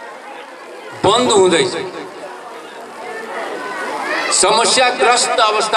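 An elderly man speaks with animation into a microphone, heard through a loudspeaker.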